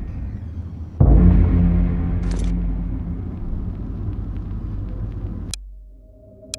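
A deep, low rumble booms suddenly and slowly fades.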